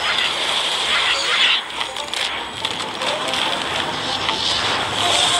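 A video game laser beam crackles and hisses steadily.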